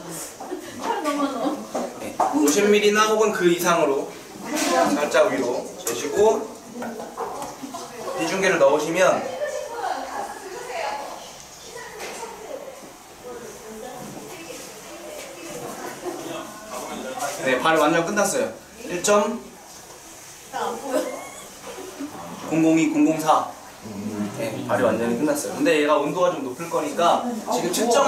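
A young man talks calmly and explains, close by.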